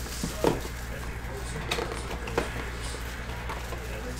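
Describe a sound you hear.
Plastic wrapping crinkles as it is pulled off a box.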